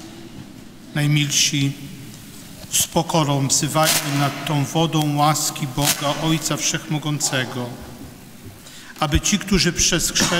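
A group of men sing together in a large echoing hall.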